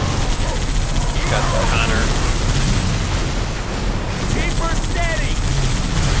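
A mounted gun fires in rapid bursts.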